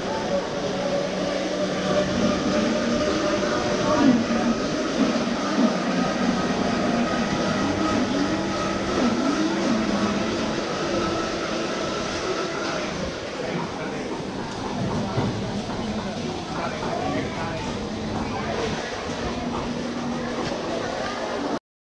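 Many people chatter in a busy, echoing indoor hall.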